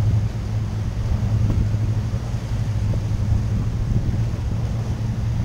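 Wind blows across the water.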